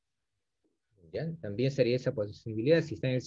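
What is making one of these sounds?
A man speaks calmly and close to a microphone, as if teaching.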